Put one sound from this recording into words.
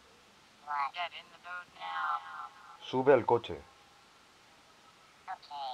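A man talks excitedly close to a microphone.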